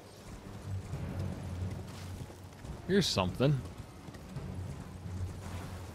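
A horse gallops over soft ground.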